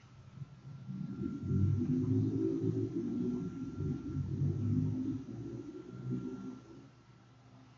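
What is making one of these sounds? A man talks calmly and close into a microphone.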